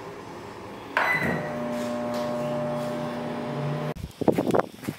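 A microwave hums steadily as it runs.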